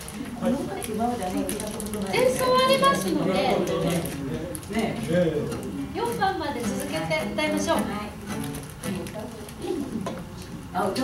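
An electronic keyboard plays.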